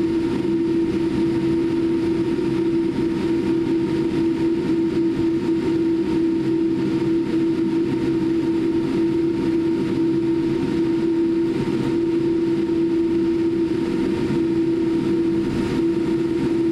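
Aircraft wheels rumble over the runway.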